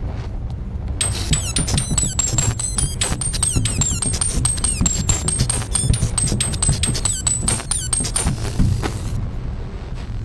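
Rubber balloons squeak and rub together.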